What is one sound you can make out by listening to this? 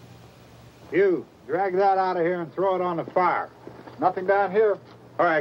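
A man speaks loudly and forcefully close by.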